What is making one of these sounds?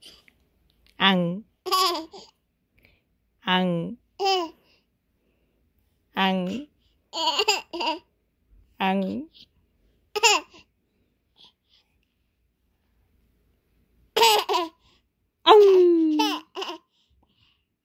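A baby giggles and squeals loudly close by.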